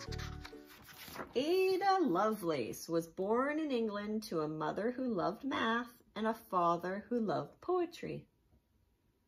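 A woman reads aloud calmly and expressively, close by.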